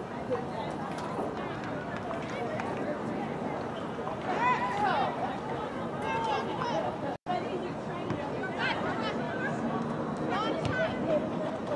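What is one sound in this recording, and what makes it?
A soccer ball is kicked with dull thuds.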